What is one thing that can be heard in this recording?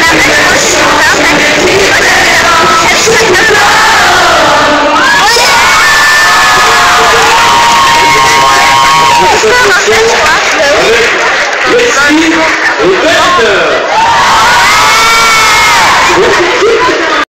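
A crowd screams and cheers loudly.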